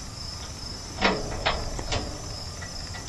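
Metal clanks as a man works at a tractor's loader bucket.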